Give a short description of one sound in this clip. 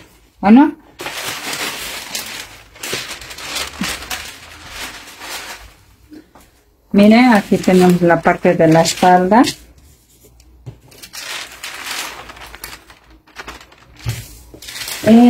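Paper rustles and crinkles as it is lifted and turned.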